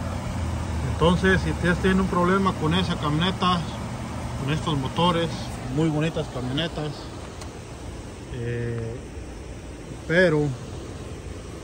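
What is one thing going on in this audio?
A man speaks close by.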